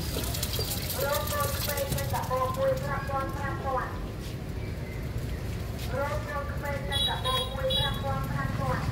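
A woman talks nearby in a lively voice.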